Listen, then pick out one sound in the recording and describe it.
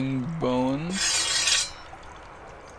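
Metal swords clash with a short ringing scrape.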